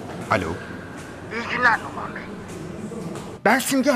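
A man speaks into a phone.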